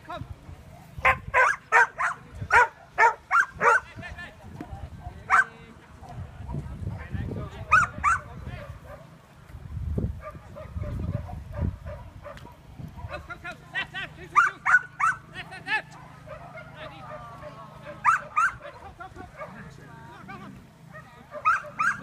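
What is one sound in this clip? A dog barks repeatedly in short sharp bursts outdoors.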